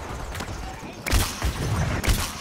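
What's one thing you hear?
A paint blast bursts with a splatter.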